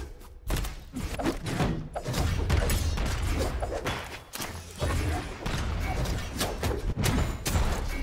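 Game fighters' hits land with sharp whooshes and smacks.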